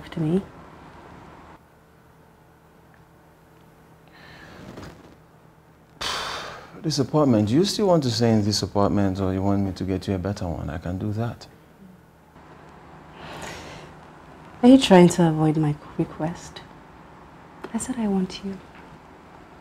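A woman speaks softly, close by.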